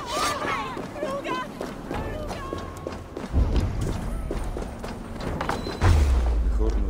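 Footsteps crunch on stone.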